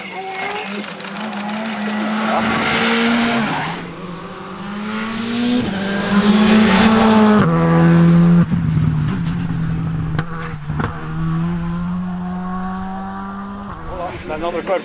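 A rally car's engine roars and revs hard as the car speeds past close by.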